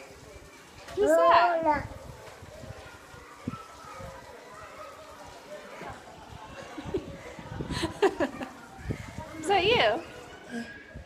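A toddler squeals in a high voice.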